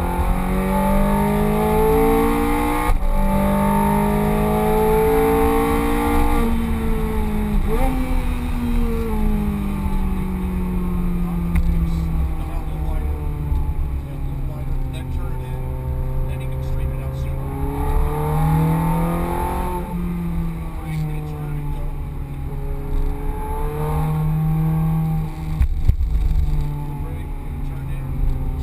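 Tyres rumble on the track.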